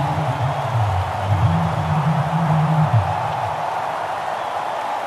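A large crowd roars steadily.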